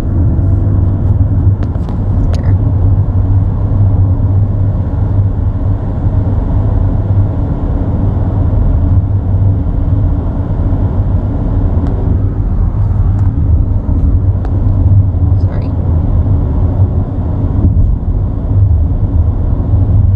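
Wind rushes past the car.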